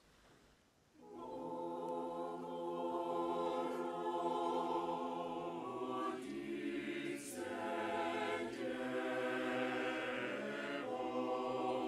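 A large congregation sings together.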